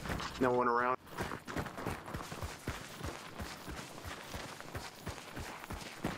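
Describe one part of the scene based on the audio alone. Footsteps run quickly over soft ground.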